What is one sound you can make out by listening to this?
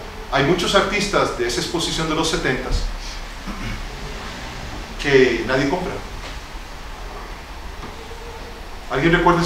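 An older man speaks calmly, pausing between phrases.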